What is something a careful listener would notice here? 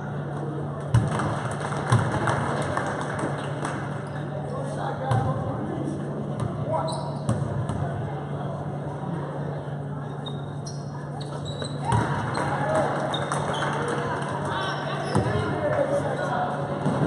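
A basketball bounces on a hard wooden floor.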